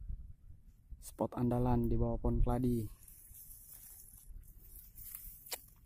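Dry grass rustles as it is brushed aside.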